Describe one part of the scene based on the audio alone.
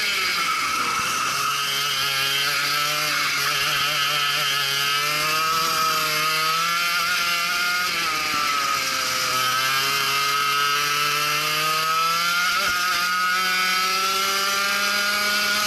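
A kart engine buzzes loudly up close, its pitch rising and falling through the corners.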